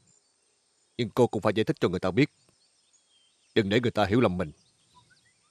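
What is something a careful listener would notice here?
An elderly man speaks in a low, serious voice nearby.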